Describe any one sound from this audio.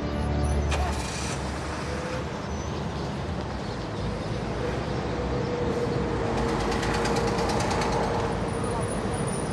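A car engine idles and then pulls away.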